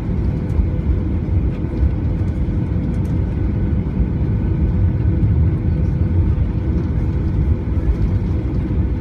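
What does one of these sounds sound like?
Jet engines rumble and drone steadily as an airliner taxis.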